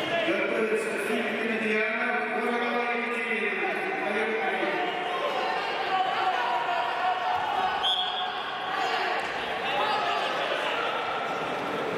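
A crowd of spectators chatters and calls out in a large echoing hall.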